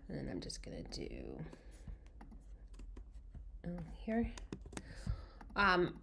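Keyboard keys click as someone types.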